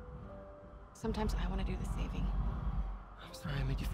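A young woman speaks softly and earnestly.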